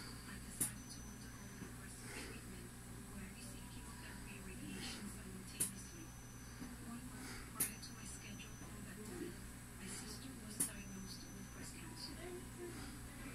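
A television plays voices through a small speaker in the room.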